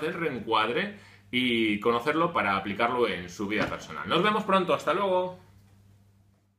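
A man speaks with animation, close to the microphone.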